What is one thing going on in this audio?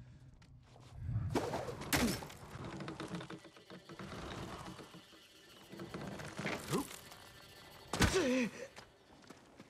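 A young man talks into a close microphone with animation.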